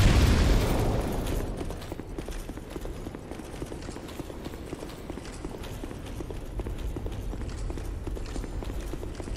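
Footsteps in armour clank on a stone floor in a large echoing hall.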